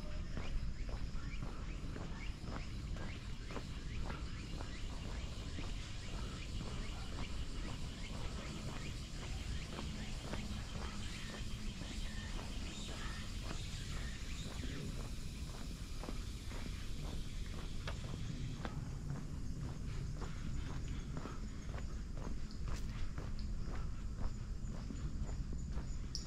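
Footsteps tread steadily on a stone path outdoors.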